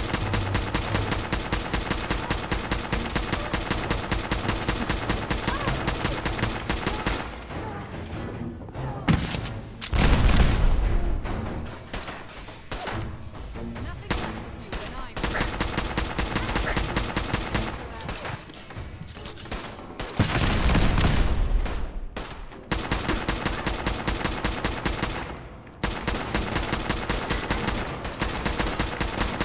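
A rapid-fire gun shoots in fast bursts.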